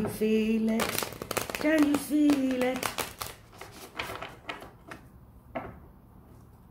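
Playing cards shuffle and riffle in a woman's hands.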